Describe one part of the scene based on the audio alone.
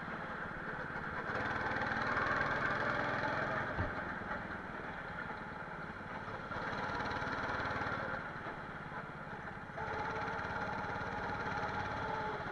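A go-kart engine buzzes loudly close by, rising and falling as it speeds up and slows through turns.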